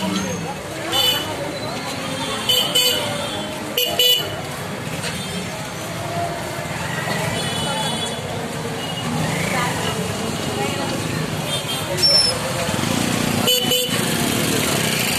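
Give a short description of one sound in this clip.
A crowd of people talks loudly outdoors.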